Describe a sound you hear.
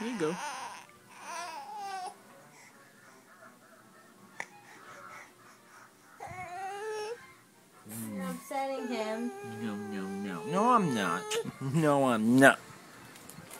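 A baby laughs and squeals close by.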